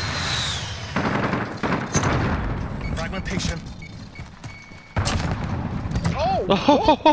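Gunshots fire in short, sharp bursts.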